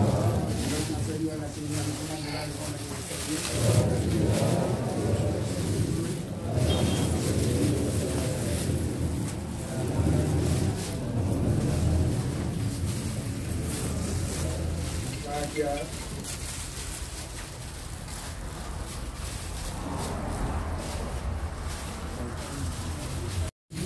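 A plastic bag rustles as it is handed over.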